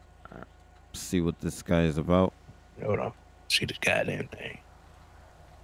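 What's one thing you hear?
A second man answers through a microphone.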